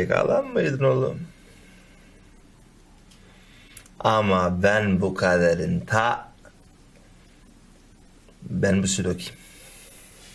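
A young man speaks quietly and calmly nearby.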